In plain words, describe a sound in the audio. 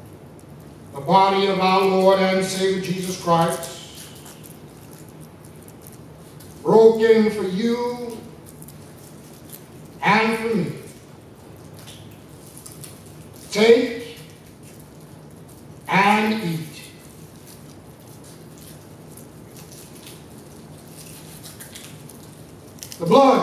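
A man speaks slowly and solemnly into a microphone, in short phrases with pauses, heard through a loudspeaker in an echoing room.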